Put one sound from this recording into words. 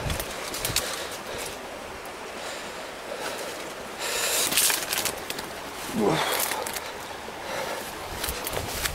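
Tall grass rustles and swishes as it brushes past.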